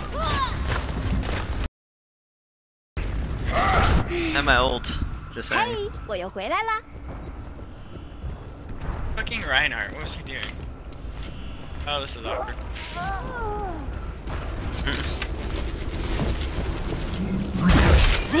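Electronic game sound effects chime and whoosh.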